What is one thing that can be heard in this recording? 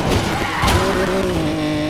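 A car crashes with a loud bang.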